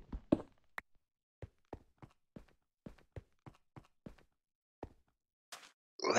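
Footsteps tap softly on sand.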